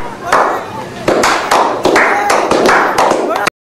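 Hands slap together in a loud high five.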